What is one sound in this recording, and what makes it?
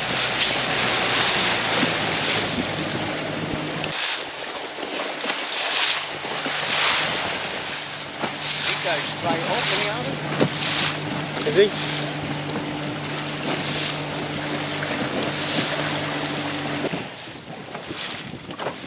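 Wind gusts and buffets across open water.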